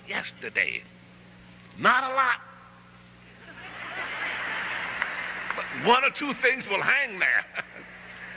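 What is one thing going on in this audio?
An elderly man speaks slowly and emphatically into a microphone in a large echoing hall.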